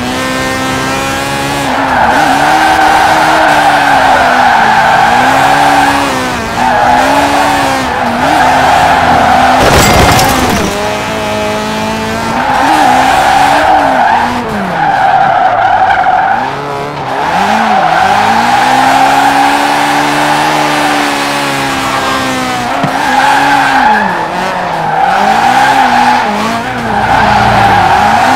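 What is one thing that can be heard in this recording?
A sports car engine revs hard, rising and falling as it shifts gears.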